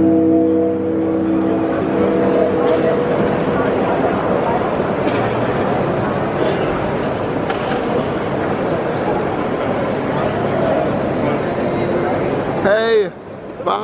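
A large crowd murmurs and chatters in an echoing hall.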